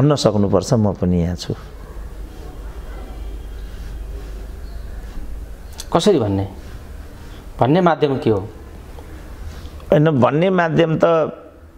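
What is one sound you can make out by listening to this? An elderly man speaks calmly and slowly into a nearby microphone, pausing between phrases.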